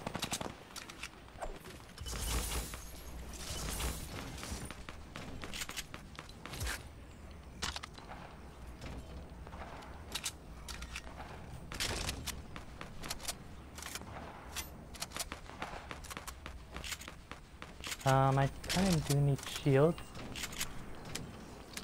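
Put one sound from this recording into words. Footsteps patter quickly on grass and wooden planks.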